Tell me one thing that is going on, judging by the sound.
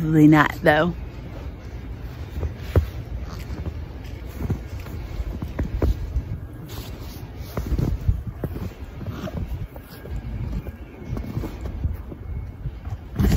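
Jacket fabric rustles and brushes close by.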